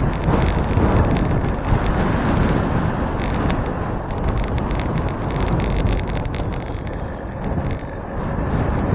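Wind rushes loudly past, as if riding outdoors at speed.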